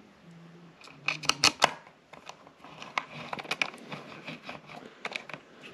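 A small metal tool taps and clicks against metal parts up close.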